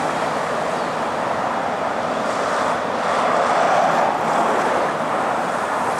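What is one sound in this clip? Tyres roll over the road as vehicles pass.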